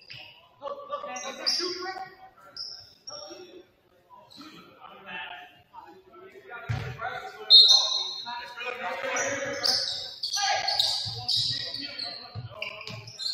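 Young women shout and call out during play in an echoing gym.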